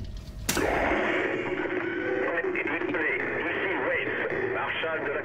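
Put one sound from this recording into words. A woman speaks urgently through a crackling radio.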